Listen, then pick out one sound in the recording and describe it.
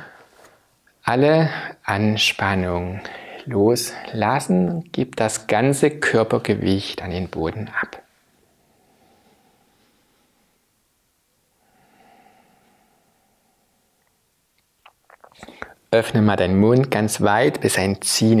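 A man speaks calmly and warmly, close to a microphone.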